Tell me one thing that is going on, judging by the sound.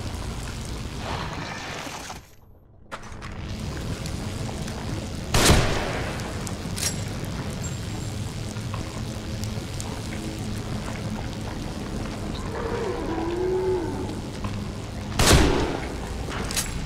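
A low hollow rumble drones steadily, echoing as if underground.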